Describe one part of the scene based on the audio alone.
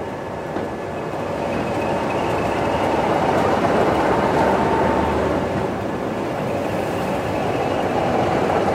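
A diesel locomotive engine roars loudly as it passes close by.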